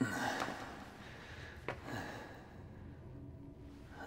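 A man groans with effort.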